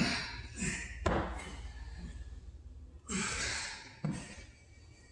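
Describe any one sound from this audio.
Dumbbells clunk against a hard floor in an echoing room.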